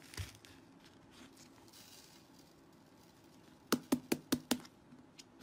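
Fingers squish soft slime, making sharp sticky pops.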